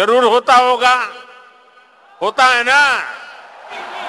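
An elderly man speaks forcefully into a microphone, heard through loudspeakers.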